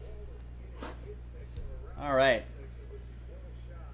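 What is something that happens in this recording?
A cardboard box lid scrapes as it is lifted.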